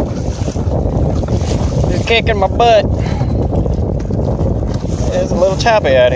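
Water splashes against the side of a kayak.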